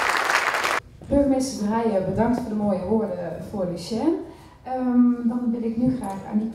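A woman speaks into a microphone, heard through loudspeakers in a large hall.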